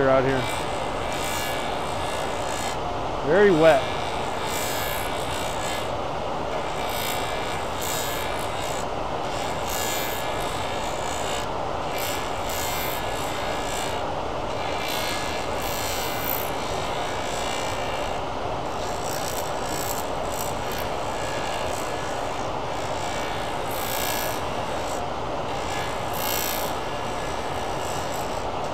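A cutting tool scrapes against a spinning workpiece.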